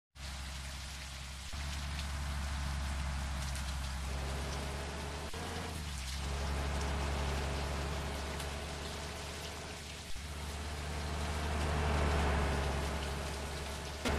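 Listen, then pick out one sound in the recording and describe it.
A bus engine hums steadily and rises in pitch as it speeds up.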